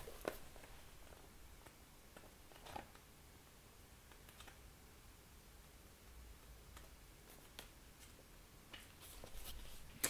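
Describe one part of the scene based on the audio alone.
Book pages are flipped softly.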